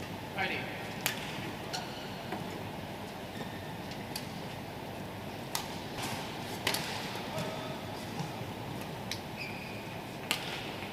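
A shuttlecock is struck sharply by rackets in a fast rally.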